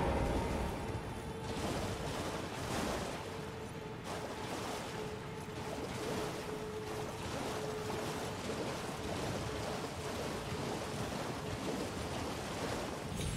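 Hooves splash through shallow water.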